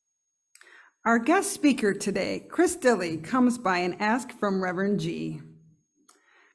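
A woman speaks calmly into a microphone, heard through an online call.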